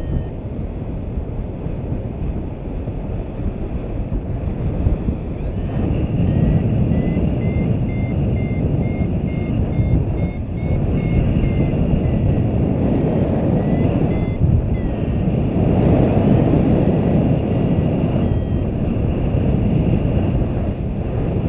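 Wind rushes steadily past outdoors, growing stronger after the first few seconds.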